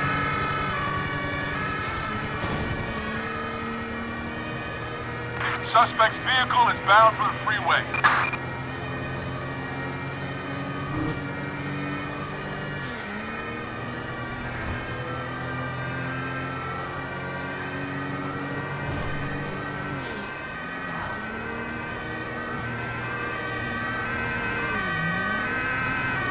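A car engine hums steadily and revs up through gear changes.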